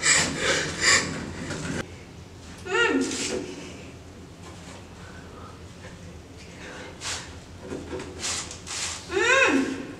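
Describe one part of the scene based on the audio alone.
A man speaks in a low, menacing voice close by.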